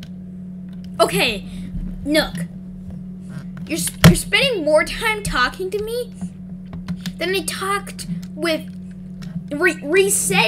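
A young person speaks with animation into a headset microphone.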